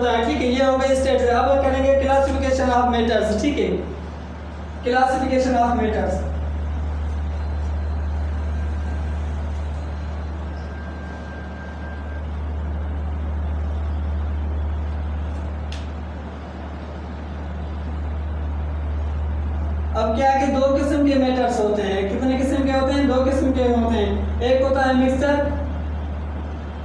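A young man speaks clearly and steadily, close by.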